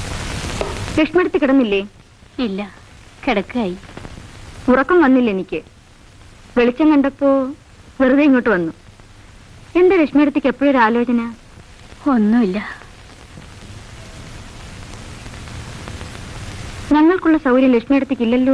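A woman speaks quietly and with feeling, close by.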